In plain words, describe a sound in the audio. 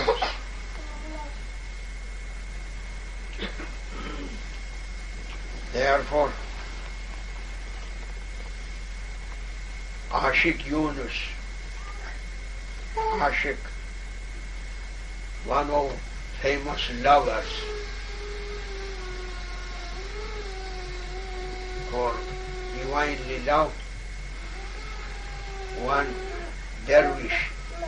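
An elderly man speaks slowly and calmly, with long pauses, close by.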